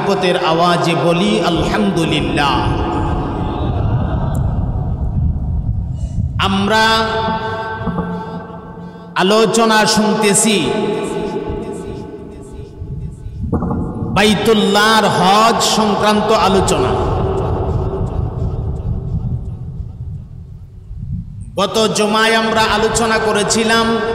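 An elderly man preaches loudly into a microphone, in a sing-song, chanting voice through a loudspeaker with an echo.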